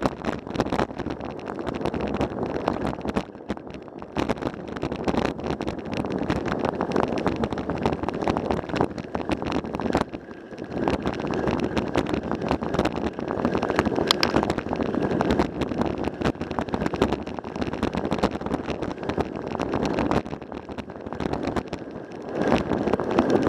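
Tyres crunch and rattle over a gravel road.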